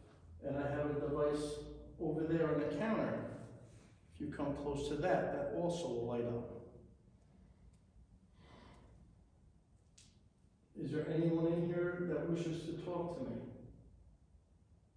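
A man speaks calmly nearby in a large echoing room.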